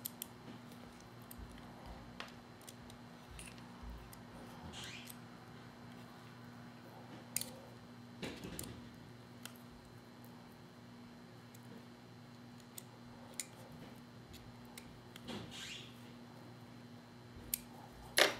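A small metal tool clicks and scrapes against plastic and metal parts.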